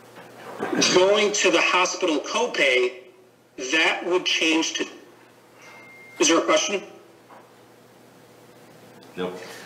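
A young woman talks in a calm voice, heard through a microphone.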